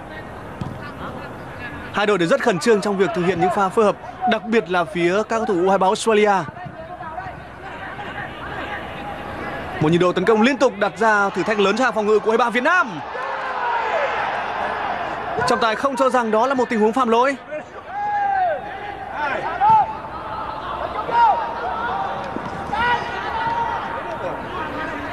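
A large stadium crowd roars and chants in the distance.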